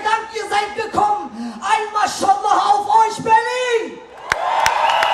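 A young woman sings loudly through a microphone over loudspeakers.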